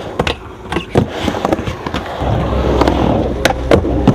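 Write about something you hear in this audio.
Skateboard trucks grind on a metal coping.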